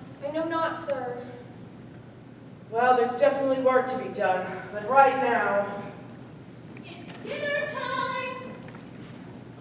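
A young man speaks loudly on a stage, in a hall with some echo.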